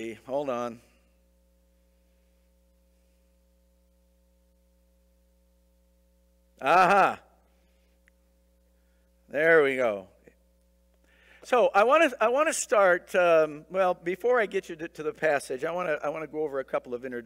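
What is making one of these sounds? A man speaks into a microphone in a large room, pausing between phrases.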